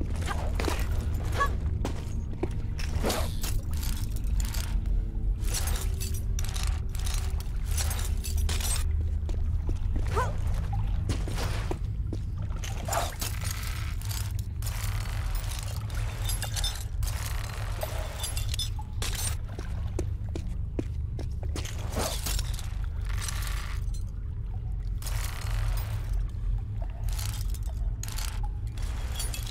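Footsteps tap on hard stone.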